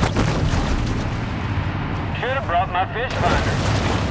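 A deep muffled rumble of moving water fills the sound underwater.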